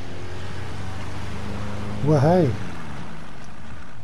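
A boat motor hums steadily on the water.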